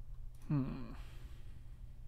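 A man says a few words briefly into a close microphone.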